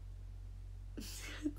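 A young girl speaks briefly, close by.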